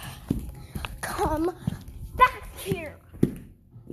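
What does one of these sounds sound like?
A young child makes high, squealing vocal sounds close to the microphone.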